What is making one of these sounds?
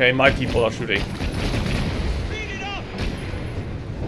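Gunshots crack in a game.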